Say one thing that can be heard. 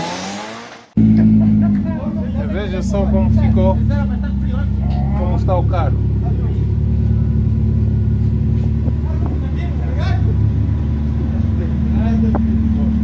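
An engine idles with a steady low rumble.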